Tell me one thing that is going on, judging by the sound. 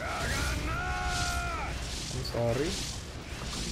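Magical spell effects hum and chime with ringing tones.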